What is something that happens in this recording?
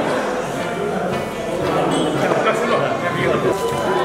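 A group of men talk and laugh close by.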